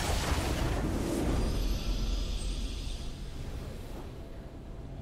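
A triumphant video game fanfare swells loudly and then fades away.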